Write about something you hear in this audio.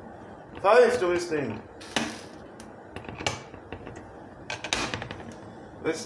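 A metal kettle's spout flap clicks open and shut.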